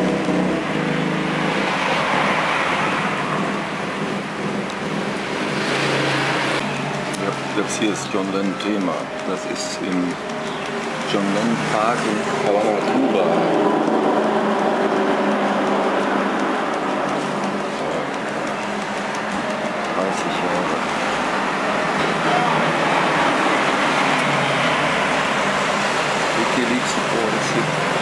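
A newspaper rustles as it is handled.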